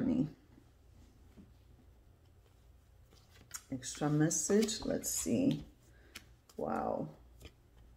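Playing cards rustle and slide against each other in a deck.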